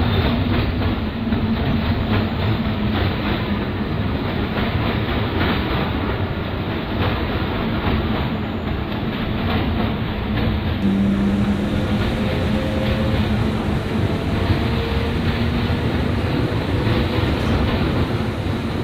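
An electric commuter train rolls along the track.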